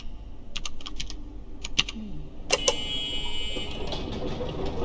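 An electronic keypad beeps and chirps.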